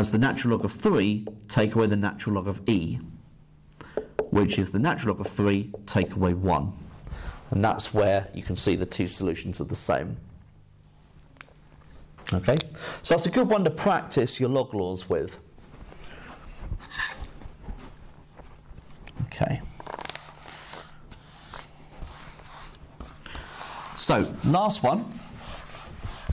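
A man explains calmly and clearly, close by.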